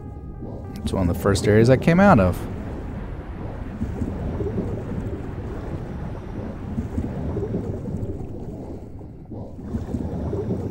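A low, muffled underwater rumble drones steadily.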